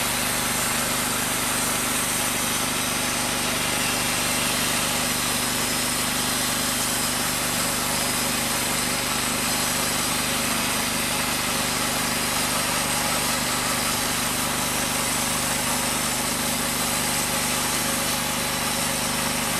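A band sawmill engine runs with a loud, steady drone.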